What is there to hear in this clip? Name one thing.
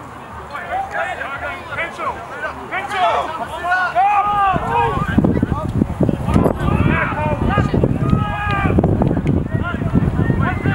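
Men and women shout and cheer close by outdoors.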